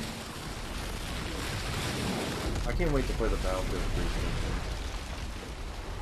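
Water roars and crashes in heavy waves.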